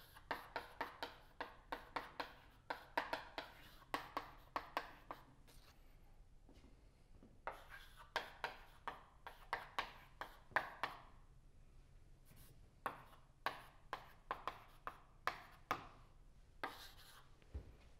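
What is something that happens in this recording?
Chalk taps and scrapes on a blackboard in quick strokes.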